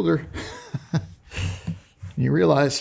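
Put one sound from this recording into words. A middle-aged man chuckles briefly.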